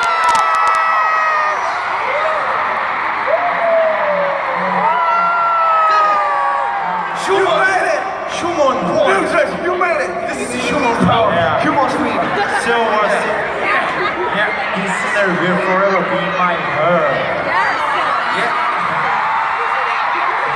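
A huge crowd sings along loudly, echoing through a vast open arena.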